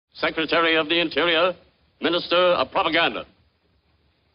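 A man shouts loudly through a microphone.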